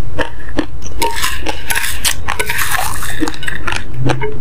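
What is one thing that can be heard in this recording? A spoon scrapes and rustles through dry rice on a plate.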